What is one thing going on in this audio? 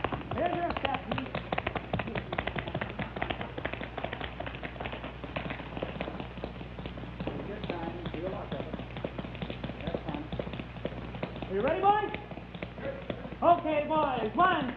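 Tap shoes click rapidly on a wooden floor.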